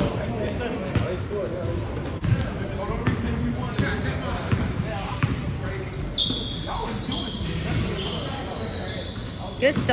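A basketball thumps on the hardwood floor.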